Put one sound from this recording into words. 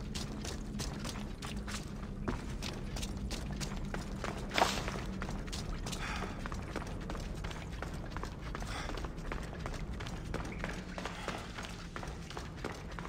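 Footsteps crunch on rocky ground at a steady pace.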